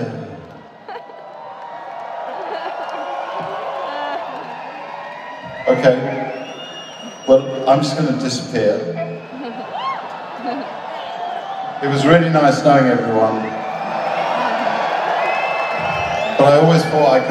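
A man sings into a microphone through loud speakers in a large echoing arena.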